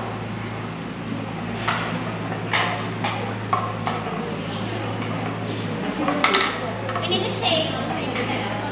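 A roomful of young people chatters at once, nearby.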